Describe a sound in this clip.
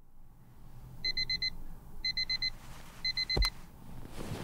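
A digital alarm clock beeps in short repeated bursts.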